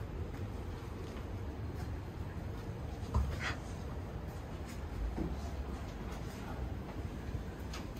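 Footsteps walk along a hard floor.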